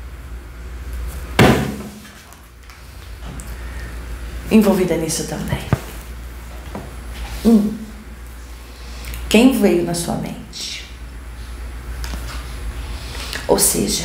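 Cards shuffle and flick in a woman's hands.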